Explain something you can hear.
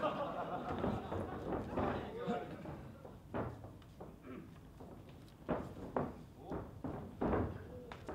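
Wrestlers' bodies thud and slap against each other and the mat.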